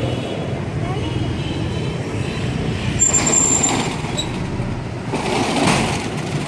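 Motorbikes ride past.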